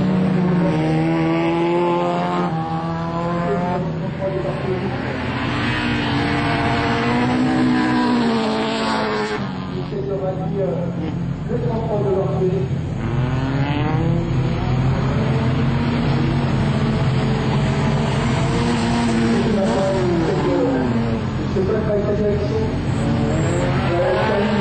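A rally car engine revs hard, rising and falling in pitch as it races by.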